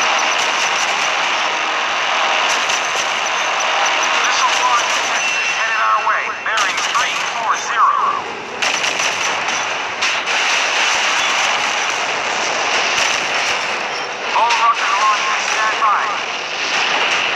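Shells explode with loud booms.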